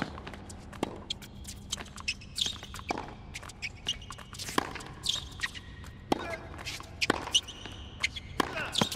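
A tennis ball is struck back and forth with rackets in a sharp, regular rally.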